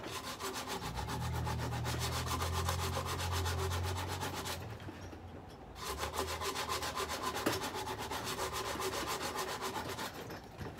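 Loose material rustles as it pours from a sack into a bucket.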